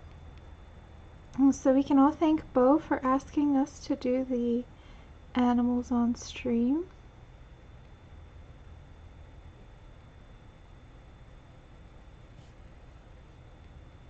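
A pencil softly scratches and strokes across paper.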